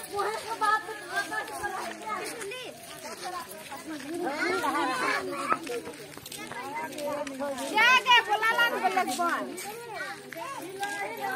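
A group of women sing together outdoors.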